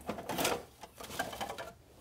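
Thick paint pours and splats softly from a container.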